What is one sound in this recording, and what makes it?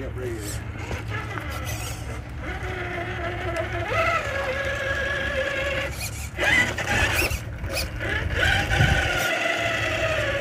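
A small electric motor whines, rising and falling in pitch as a toy truck drives.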